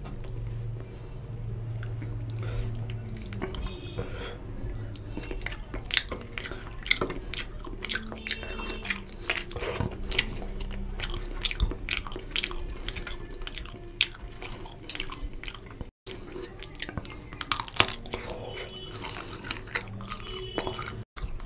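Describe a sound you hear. Fingers squish and mix wet rice on a metal plate.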